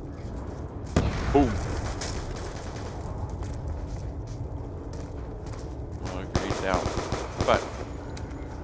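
Pistol shots crack.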